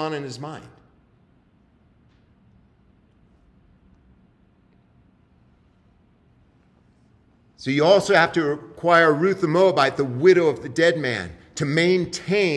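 A man reads aloud calmly through a microphone.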